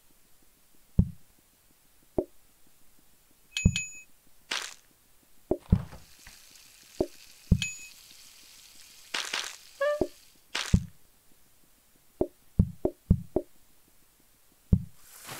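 Short soft pops and thuds sound as items are picked up and put down.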